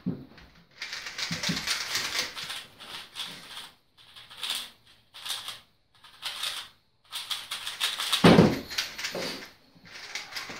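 Plastic puzzle cubes click and rattle as they are turned quickly.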